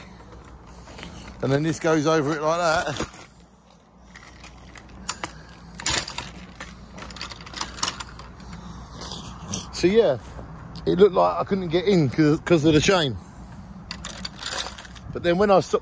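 A metal chain rattles against a gate.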